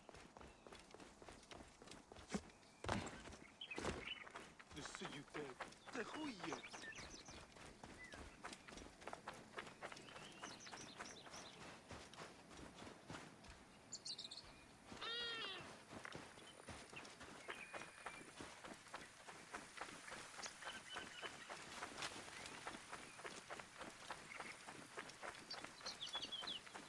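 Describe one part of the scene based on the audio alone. Running footsteps crunch on sand.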